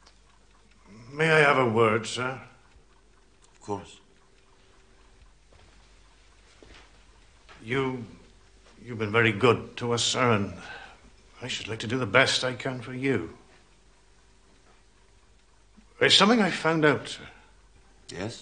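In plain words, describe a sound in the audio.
A middle-aged man speaks calmly and politely.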